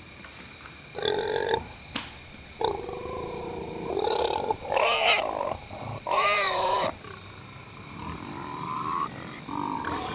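A man speaks with animation close by, his voice muffled by a mask.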